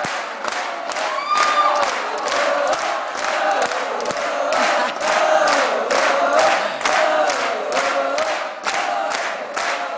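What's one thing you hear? An audience claps in a steady rhythm.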